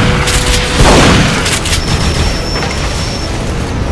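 A laser beam fires with a sharp zap.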